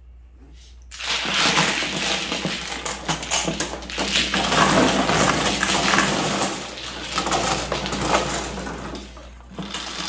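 Plastic tiles clatter and rattle as hands shuffle them across a table.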